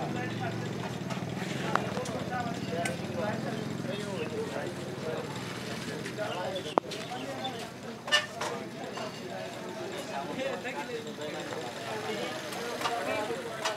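A motorcycle engine idles nearby.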